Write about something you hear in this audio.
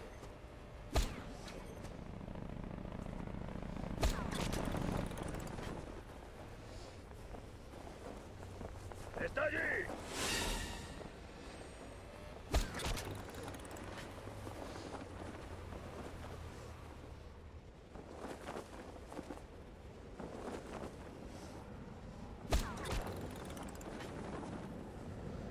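Wind rushes steadily past a parachute gliding through the air.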